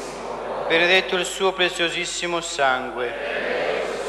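A middle-aged man chants through a microphone in a low, steady voice.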